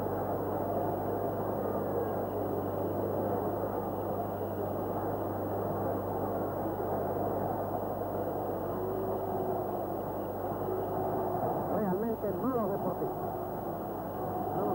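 A large stadium crowd roars steadily in an open-air ground.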